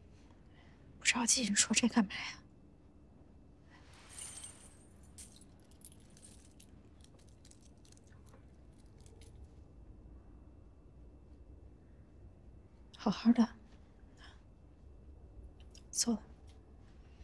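A second young woman answers calmly, close by.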